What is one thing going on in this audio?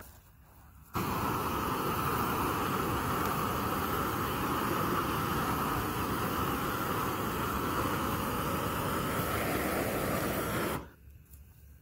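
A flamethrower roars steadily outdoors.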